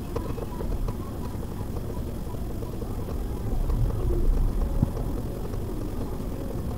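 A car engine idles with a low rumble inside the cabin.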